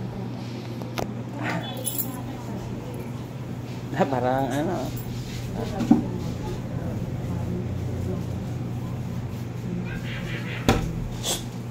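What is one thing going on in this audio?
Hands slap against glass.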